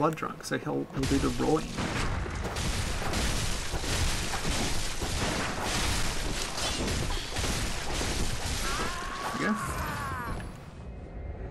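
Blades clash and slash fiercely.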